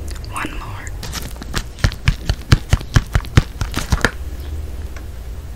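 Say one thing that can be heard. A paper box crinkles and rustles close up.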